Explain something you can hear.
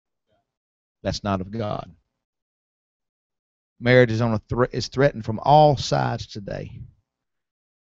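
A man preaches through a microphone in a large room, speaking with emphasis.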